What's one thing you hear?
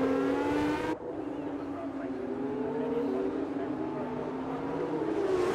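A racing car engine whines in the distance, rising and falling in pitch.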